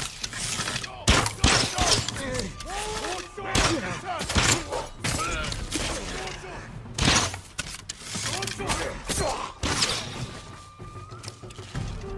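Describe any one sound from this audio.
Swords clash and ring sharply, again and again.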